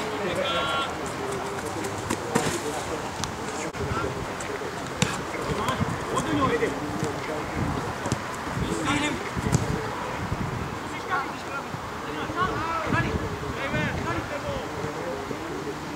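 Young men shout to one another across an open field.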